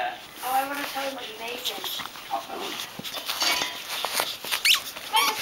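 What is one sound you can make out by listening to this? A small dog shuffles and rustles close by.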